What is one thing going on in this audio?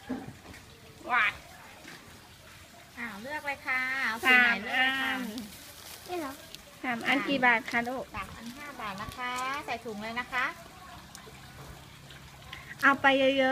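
A young girl talks brightly up close.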